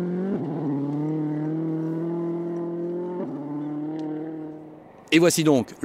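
A rally car engine roars steadily as the car speeds past.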